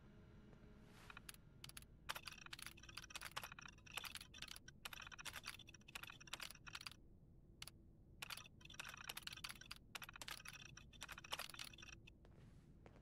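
Text on a computer terminal types out with rapid electronic clicks.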